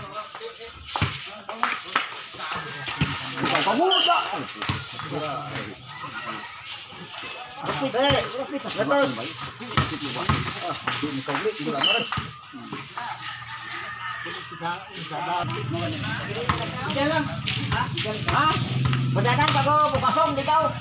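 Young men chatter and shout nearby outdoors.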